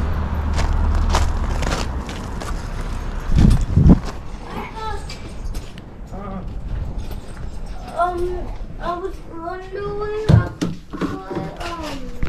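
A light metal rack rattles and clanks as it is carried.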